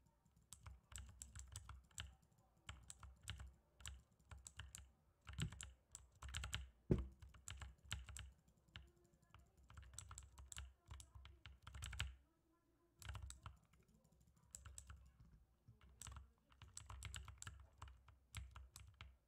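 Sharp game hit sounds crack rapidly, again and again.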